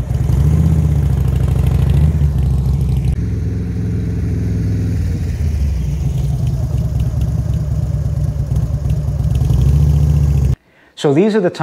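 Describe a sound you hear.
A motorcycle engine idles and rumbles nearby.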